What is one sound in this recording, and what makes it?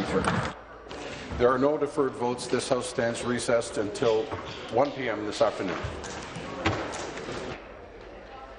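A man speaks formally into a microphone in a large hall.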